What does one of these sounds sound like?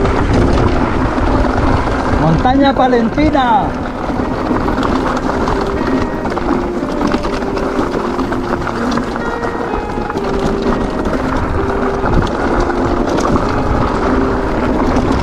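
A bicycle frame clatters and rattles over bumps.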